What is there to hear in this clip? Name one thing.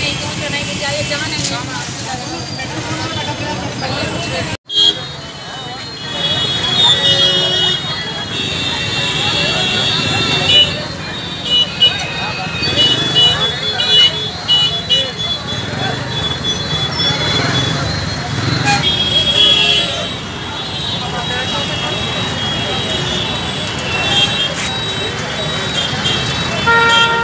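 Vehicle engines rumble in street traffic.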